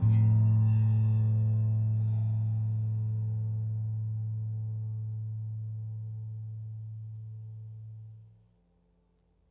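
An electric bass holds a deep low note that slowly fades away.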